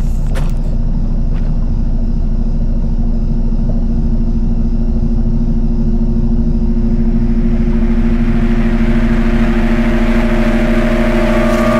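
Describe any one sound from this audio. A motor hums underwater, growing louder as it comes closer.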